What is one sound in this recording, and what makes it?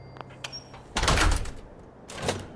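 A heavy metal door opens with a loud thud.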